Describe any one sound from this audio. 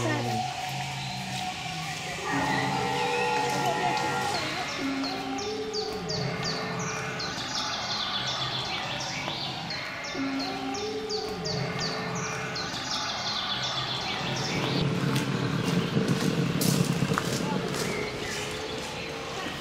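Dinosaur roars and growls blare from a loudspeaker outdoors.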